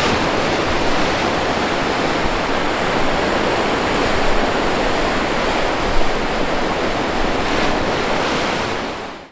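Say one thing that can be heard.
Waves crash and wash over rocks in a steady roar.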